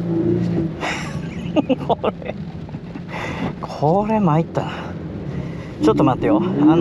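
A sports car engine revs hard.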